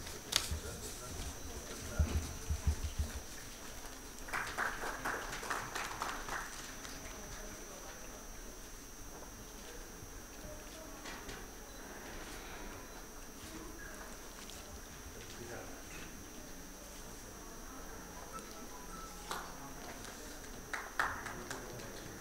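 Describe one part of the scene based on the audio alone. Gift wrapping paper rustles and crinkles as a package is handed over.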